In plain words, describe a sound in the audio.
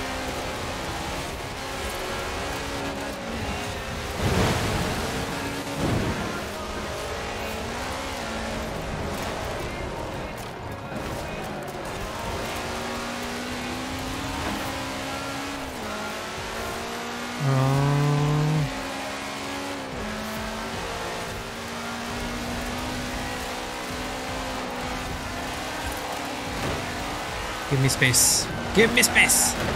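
A racing car engine roars and revs steadily.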